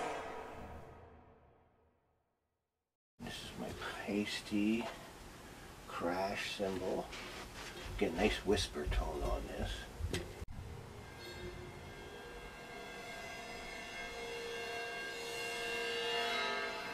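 A struck cymbal rings and bends in pitch as it is dipped into water.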